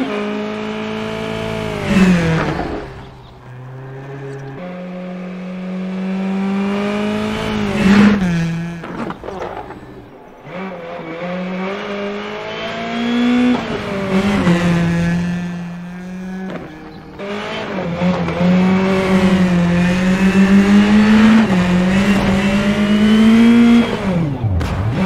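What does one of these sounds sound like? A rally car engine roars, revving up and down through the gears.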